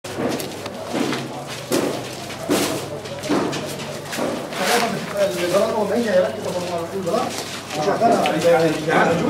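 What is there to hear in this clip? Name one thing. Footsteps shuffle along a hard floor.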